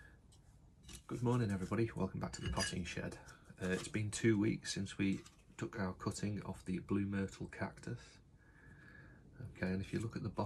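A middle-aged man talks calmly and close up.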